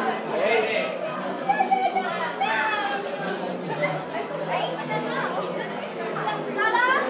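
A crowd of adults and children chatter and call out excitedly nearby.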